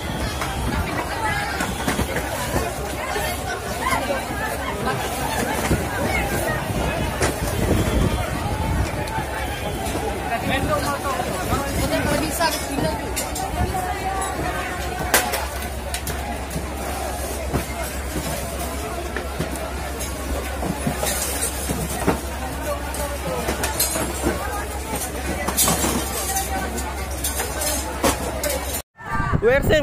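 A large crowd of men and women shouts and chatters loudly outdoors.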